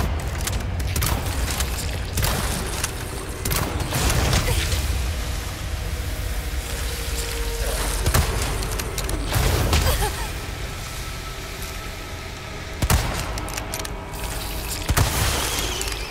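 Gunshots ring out sharply in a large echoing hall.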